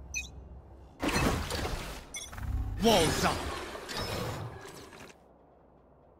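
A magical ability whooshes and crackles in a video game.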